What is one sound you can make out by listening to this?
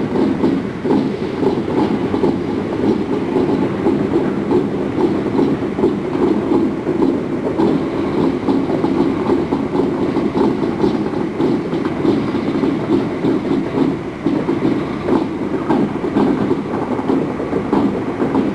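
A diesel locomotive engine rumbles steadily as the locomotive rolls slowly past.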